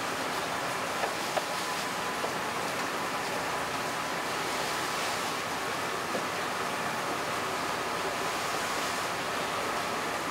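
Wooden boards knock against a metal rack.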